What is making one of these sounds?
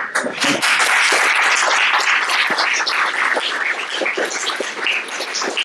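A man speaks to an audience through a microphone.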